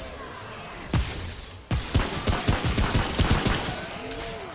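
A rifle fires several loud shots in quick succession.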